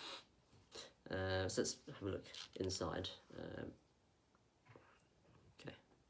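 A banana peel tears as it is pulled back.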